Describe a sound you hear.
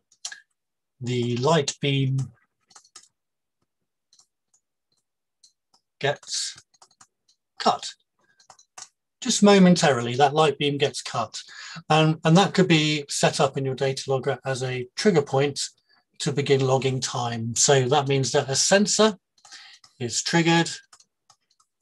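A man speaks calmly and clearly into a microphone, as if teaching.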